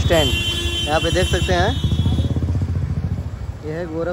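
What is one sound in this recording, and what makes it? Traffic rumbles past on a street.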